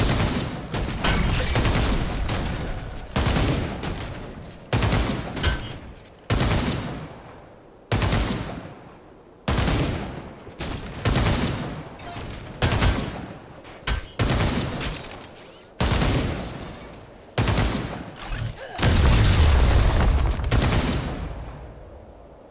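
Energy weapons fire in rapid, loud bursts.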